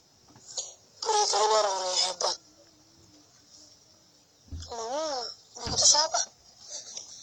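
A young boy speaks calmly nearby.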